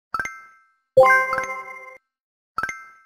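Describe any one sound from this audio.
A rich cheerful chime rings out.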